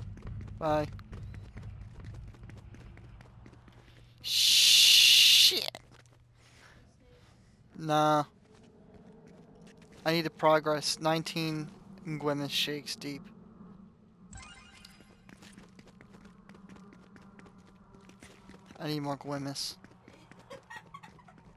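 Quick footsteps patter on a hard tiled floor.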